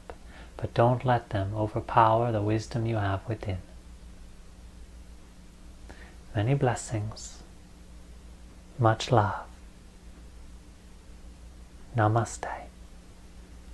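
A young man speaks calmly and slowly close to a microphone, with long pauses.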